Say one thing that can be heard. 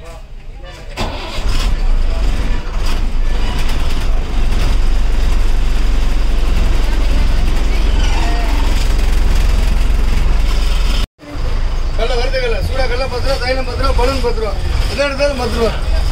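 A bus engine rumbles loudly and steadily.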